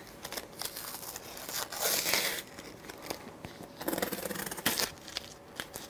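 Packing tape rips and crackles as it is pulled loose.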